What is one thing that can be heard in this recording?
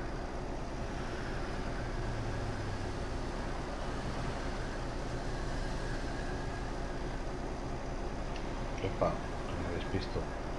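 A truck engine rumbles steadily as it drives along a highway.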